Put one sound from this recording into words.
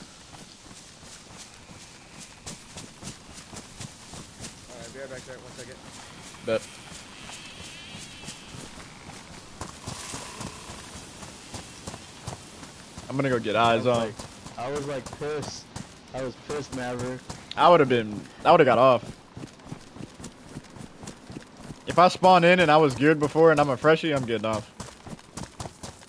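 Footsteps rustle quickly through grass and undergrowth.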